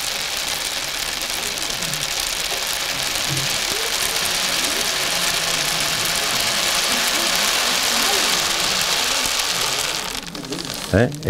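A rain stick rattles with a steady, rushing patter.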